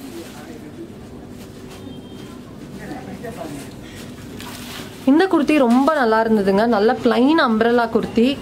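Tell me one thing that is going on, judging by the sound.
Fabric rustles as a garment is shaken and handled.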